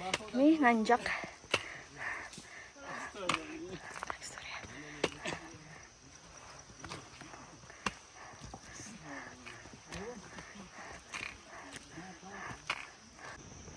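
A walking pole taps on stones.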